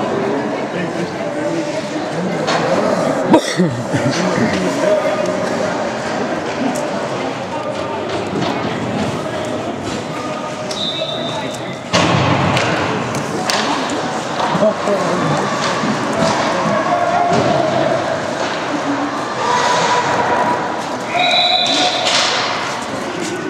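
Ice skates scrape and hiss across ice in a large echoing hall.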